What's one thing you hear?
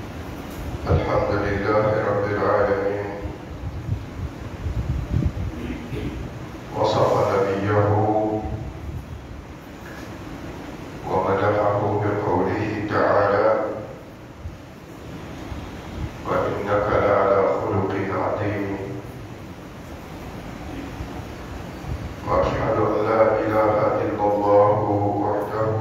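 A man preaches loudly through a microphone in a large echoing hall, in bursts with pauses between them.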